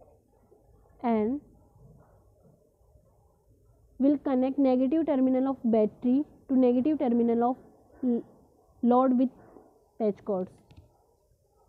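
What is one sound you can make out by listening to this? An electronic speaker sounds a series of short, loud beeping tones that shift in pitch.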